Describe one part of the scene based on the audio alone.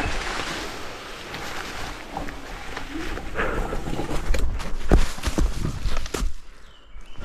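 Wheels roll and crunch over dry leaves on a dirt trail.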